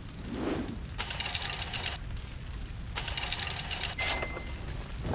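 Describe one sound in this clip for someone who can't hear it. A game's score counter ticks rapidly as points tally up.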